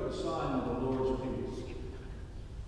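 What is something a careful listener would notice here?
A man chants through a microphone in a large echoing hall, then falls silent.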